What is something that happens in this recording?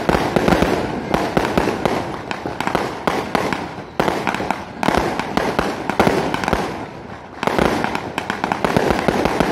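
Fireworks burst overhead with loud booms.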